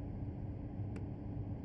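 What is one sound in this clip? A switch clicks once.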